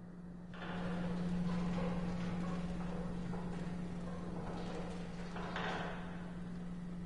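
A metal cold-storage door creaks open.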